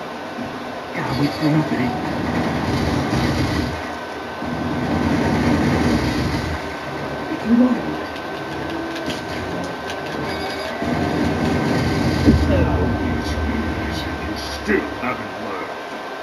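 Explosions and fighting sounds from a video game play through a television speaker.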